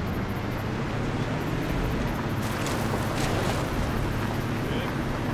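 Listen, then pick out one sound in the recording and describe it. Tyres crunch and rumble over a dirt track.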